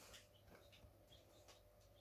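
A wall switch clicks as it is pressed.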